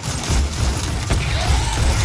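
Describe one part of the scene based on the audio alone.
Explosions boom heavily.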